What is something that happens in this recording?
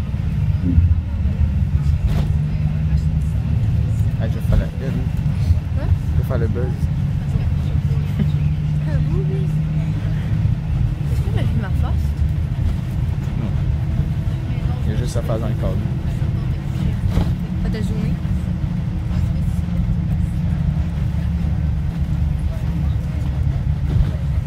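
A bus engine rumbles low and steady.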